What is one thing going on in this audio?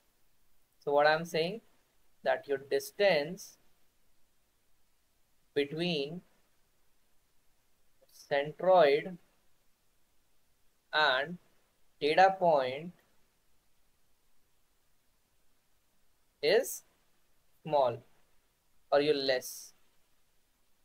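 A man speaks calmly in short phrases over an online call.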